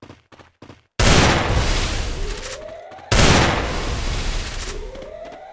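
Gunshots bang loudly and echo.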